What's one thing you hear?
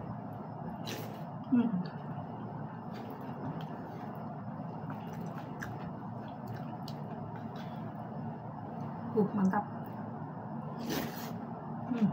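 A spoon clinks against a ceramic bowl.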